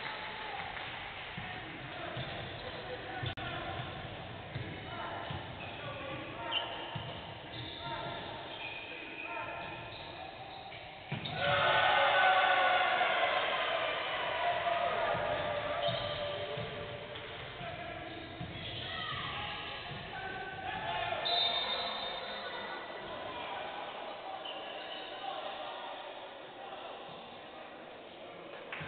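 Sneakers squeak on a hardwood court in an echoing hall.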